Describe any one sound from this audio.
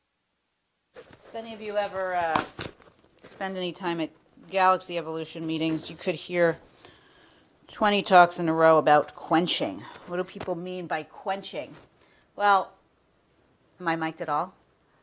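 A young woman speaks with animation through a microphone.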